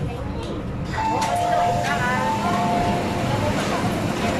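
A door chime beeps in a repeating pattern.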